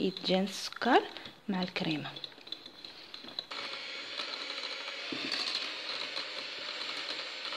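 An electric hand mixer whirs steadily, getting louder partway through.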